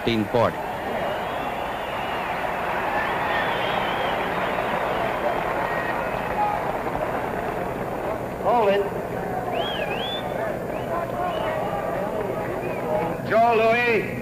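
A large arena crowd murmurs and roars.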